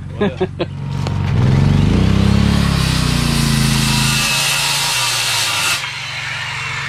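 A small generator engine runs close by and revs up.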